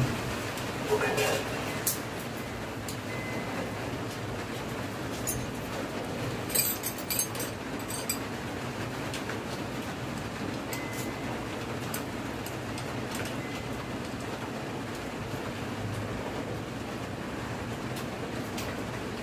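Metal tools click and clink against metal parts.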